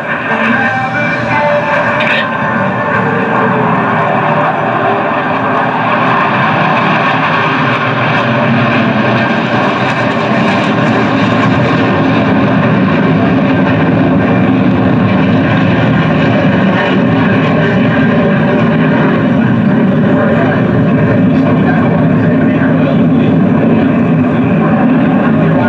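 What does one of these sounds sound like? A jet engine roars loudly overhead in a steady rumble.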